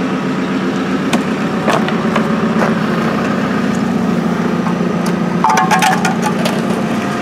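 Stones and earth clatter against a metal bucket.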